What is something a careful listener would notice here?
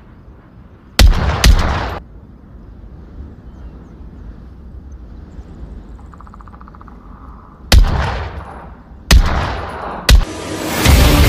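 A rifle fires loud, echoing shots.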